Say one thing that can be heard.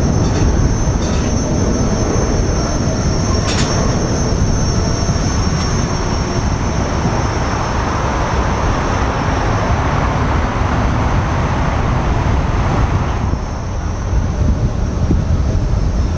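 Wind buffets the microphone loudly.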